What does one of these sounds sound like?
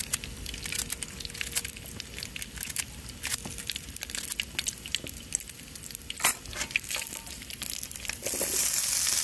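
A knife snips and clicks through leek stalks.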